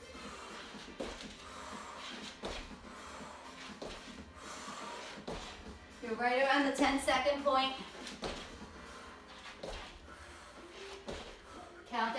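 Sneakers thud on a wooden floor at a steady pace.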